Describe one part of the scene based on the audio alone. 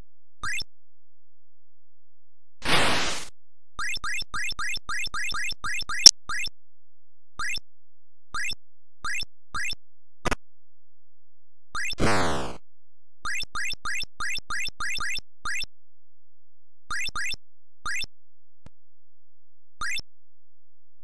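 Short rising electronic blips sound in quick bursts.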